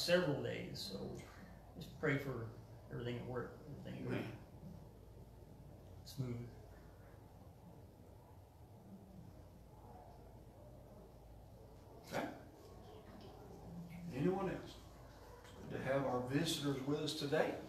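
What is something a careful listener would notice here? A man speaks calmly in a room with a slight echo, with pauses between phrases.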